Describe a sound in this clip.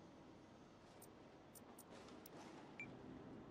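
Soft electronic menu clicks tick a few times.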